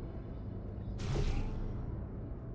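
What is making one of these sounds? A portal gun fires with a short whooshing zap.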